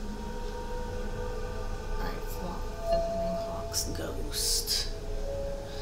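A bright chime rings as a menu opens.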